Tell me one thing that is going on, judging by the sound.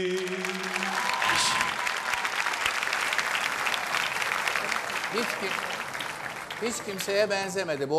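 A large audience applauds and cheers.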